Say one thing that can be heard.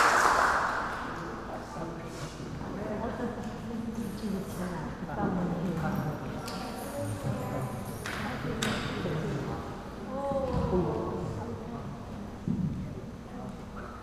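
Children and adults murmur and chatter softly nearby in a large echoing room.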